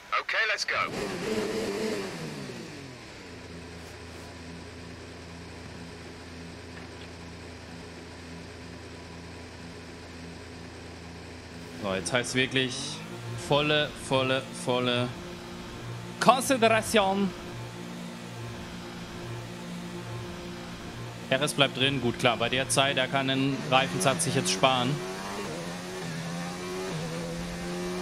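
A racing car engine idles with a steady low hum.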